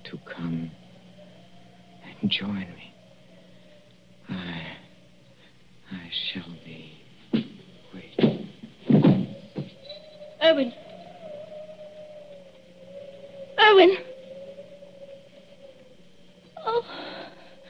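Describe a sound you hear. A woman cries out in distress, heard through an old microphone.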